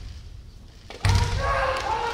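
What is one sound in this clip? A bamboo sword cracks against protective armour.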